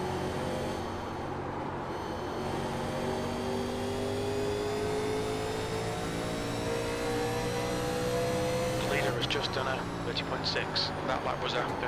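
A race car engine roars steadily, its pitch slowly climbing as it speeds up.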